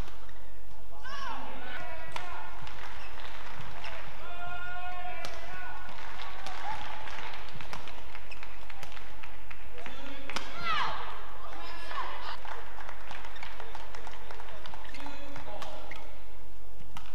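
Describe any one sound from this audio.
Sports shoes squeak loudly on a court floor.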